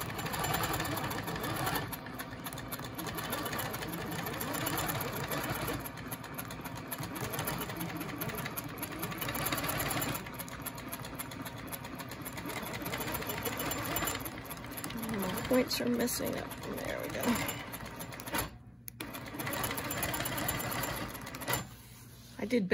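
A sewing machine hums and whirs steadily as it stitches.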